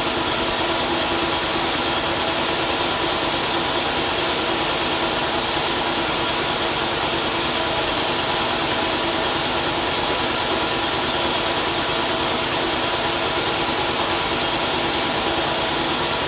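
A paint sprayer's motor runs with a steady, even hum.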